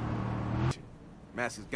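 A car engine idles close by.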